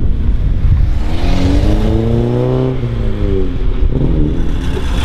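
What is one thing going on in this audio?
A sports car engine roars past, rising and falling in pitch.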